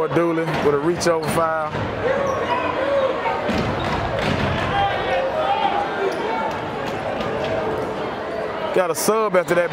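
A crowd in a large echoing gym chatters and cheers.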